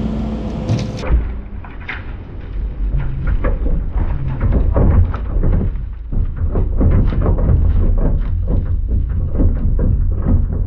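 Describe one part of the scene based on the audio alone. Dirt and gravel rattle and patter as they slide across a metal truck bed.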